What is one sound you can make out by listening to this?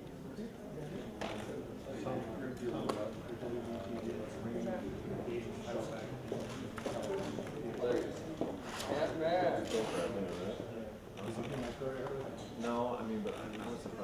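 A man speaks calmly at close range, as in an interview.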